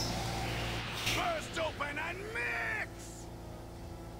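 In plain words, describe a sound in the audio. A crackling energy surge whooshes up.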